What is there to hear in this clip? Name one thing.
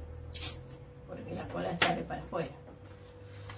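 Adhesive tape is pulled off a roll with a sticky rip.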